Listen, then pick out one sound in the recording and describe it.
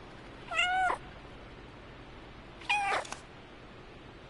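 A cat meows loudly twice, close by.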